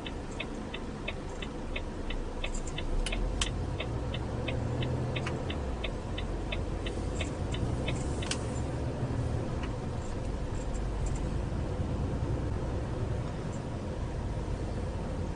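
A truck engine rumbles low and steady as the vehicle pulls away and speeds up.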